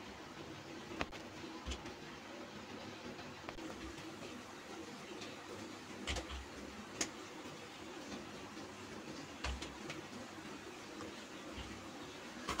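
Hands softly pat and slap dough between palms.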